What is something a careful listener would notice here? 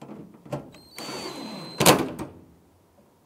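A power tool whirs as it drives a bolt.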